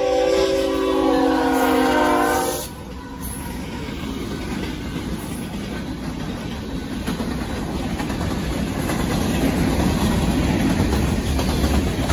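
A freight train rumbles and clatters past on the rails.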